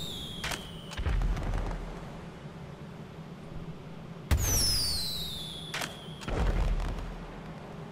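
A firework bursts with a bang overhead.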